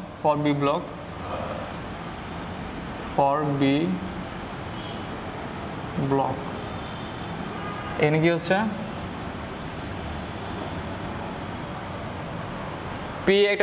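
A marker squeaks on a whiteboard as it writes.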